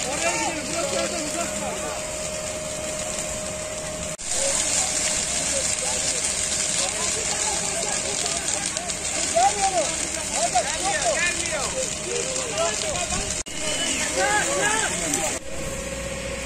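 Several people shout to each other near a fire.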